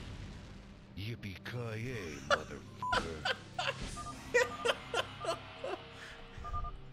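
A man speaks excitedly into a microphone up close.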